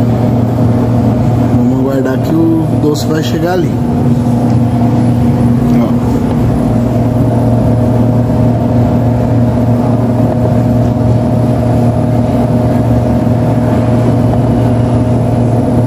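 A machine hums steadily with a low drone.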